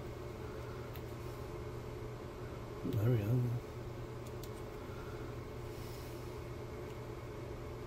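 Small plastic parts click and tap softly as they are handled.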